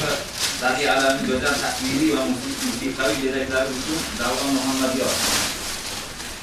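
A man reads out loud in a clear, steady voice.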